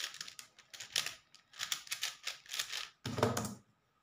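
A puzzle cube clicks and clatters as it is twisted quickly.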